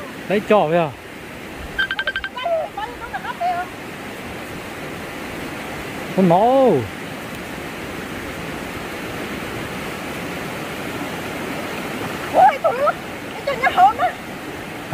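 A shallow stream burbles steadily.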